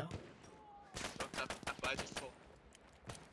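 A pistol is reloaded with metallic clicks.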